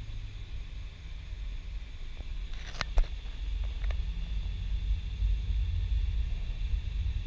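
A car drives along a snowy road, with the engine and tyres rumbling inside the cabin.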